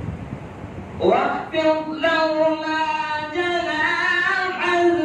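A man chants loudly in a long, drawn-out melodic voice through a microphone.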